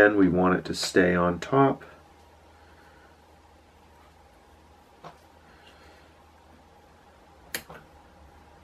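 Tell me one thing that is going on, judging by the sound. Fingers handle and tap a small metal hook.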